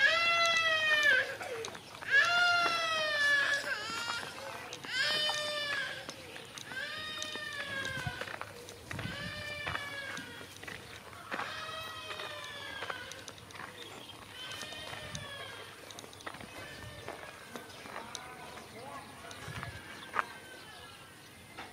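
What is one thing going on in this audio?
Footsteps crunch on a dirt road.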